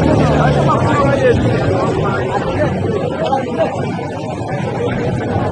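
A crowd of men shout and talk excitedly close by.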